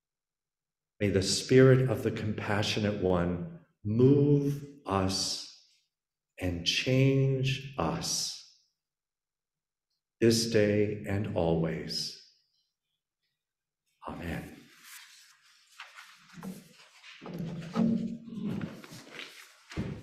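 A middle-aged man speaks with animation into a microphone, heard over an online call.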